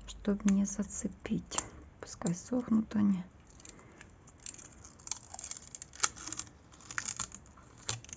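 Thin plastic film crinkles as it is peeled off a metal plate.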